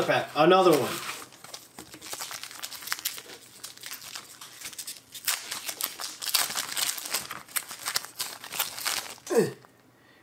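A foil card wrapper crinkles and rustles as it is torn open.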